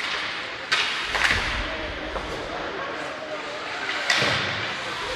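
A hockey stick knocks a puck.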